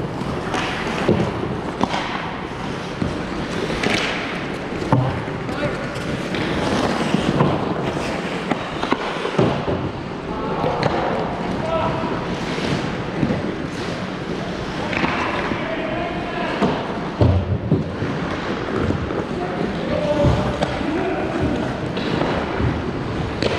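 Ice skates scrape and swish across the ice in a large echoing rink.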